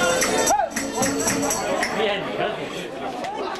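Stringed instruments are strummed briskly in a lively tune.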